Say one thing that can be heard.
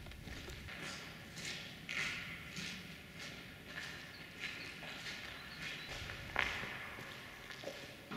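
Footsteps echo faintly in a large concrete hall.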